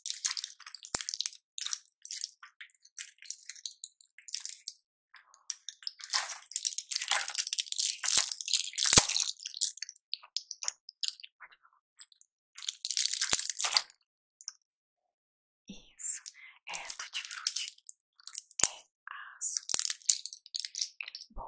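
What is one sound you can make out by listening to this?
Plastic blister packs crinkle and crackle close to a microphone.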